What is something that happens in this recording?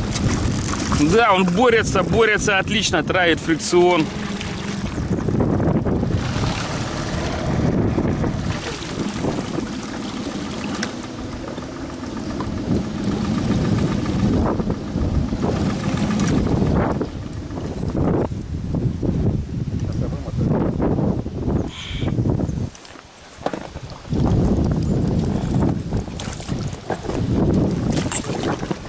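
An outboard motor hums steadily.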